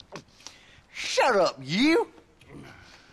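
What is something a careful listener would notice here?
A man answers gruffly and sharply.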